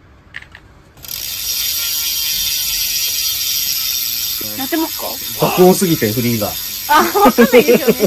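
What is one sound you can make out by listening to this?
A spinning bicycle wheel's brake disc rubs with a loud, steady high hiss.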